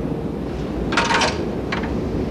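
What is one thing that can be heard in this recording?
A telephone receiver clacks down onto its hook.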